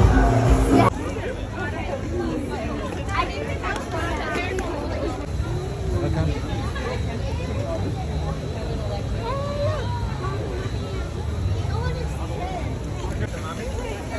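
A crowd of men, women and children chatters nearby outdoors.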